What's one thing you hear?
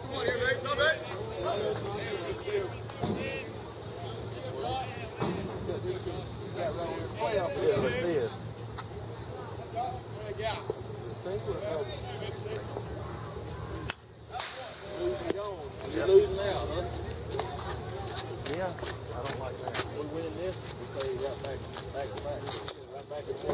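Young men call out and chatter outdoors.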